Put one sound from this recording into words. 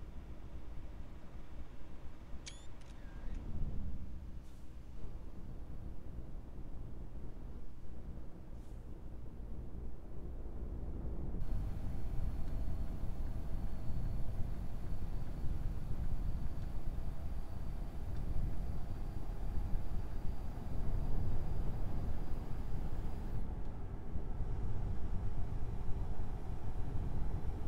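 A heavy truck engine drones steadily.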